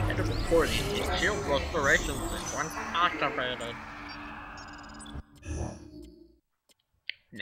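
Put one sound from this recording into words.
A shimmering electronic tone swells and then fades away.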